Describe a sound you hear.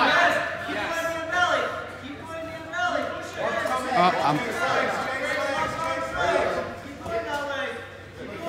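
Several adults shout encouragement loudly and excitedly close by.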